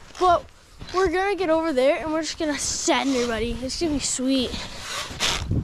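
A boy talks excitedly close by, outdoors.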